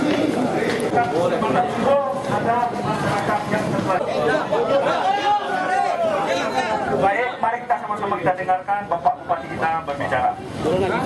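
A man speaks loudly to a crowd nearby.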